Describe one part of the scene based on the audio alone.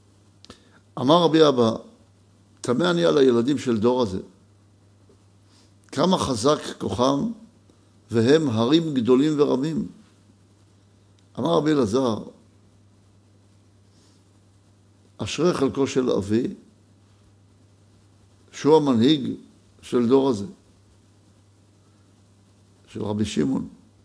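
A middle-aged man reads out calmly into a close microphone, in short phrases with pauses.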